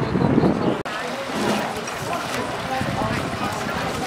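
Swimmers splash through water close by.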